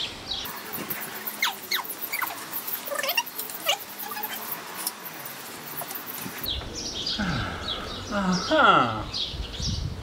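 A rubber tyre squeaks and clicks as it is worked onto a bicycle rim.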